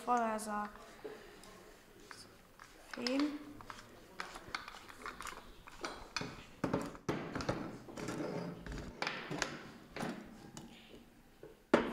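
A metal hand pump creaks and clanks as a boy works it.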